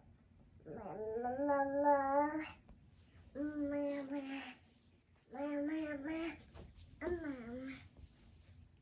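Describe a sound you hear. A baby babbles and coos loudly close by.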